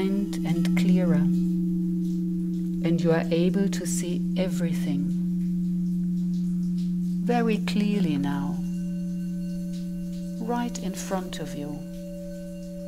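A woman sings softly into a microphone in short phrases.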